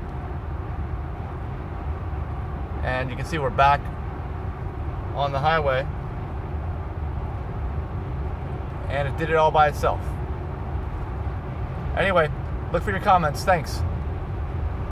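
A car's tyres and engine hum with a steady low road rumble from inside the cabin.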